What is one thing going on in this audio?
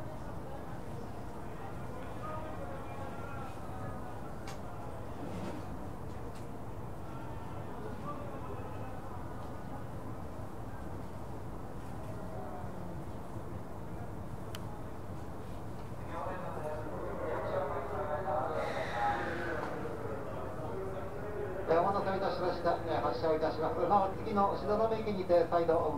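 A train rumbles steadily along the tracks.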